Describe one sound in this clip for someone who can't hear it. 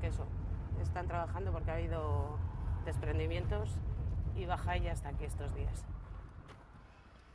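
A car engine hums low and steady, then stops.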